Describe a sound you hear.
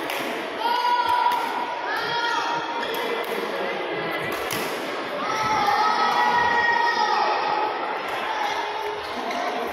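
Many children and adults chatter in the background.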